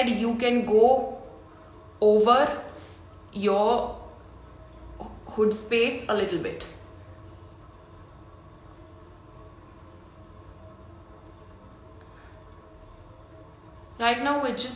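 A young woman speaks calmly and close to a microphone, in short bursts with pauses.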